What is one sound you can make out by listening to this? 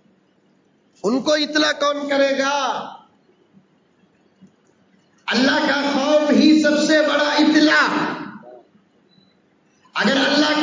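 A middle-aged man preaches loudly and with emotion into a microphone, in bursts separated by pauses.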